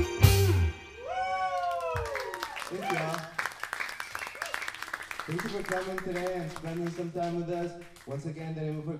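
A young man sings into a microphone.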